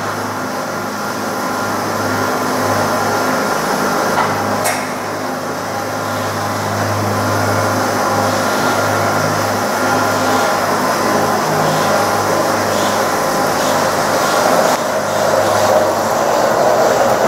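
Cable car machinery hums and rumbles steadily.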